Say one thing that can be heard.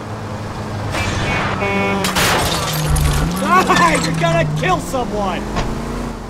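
A car crashes with a loud bang and scraping of metal.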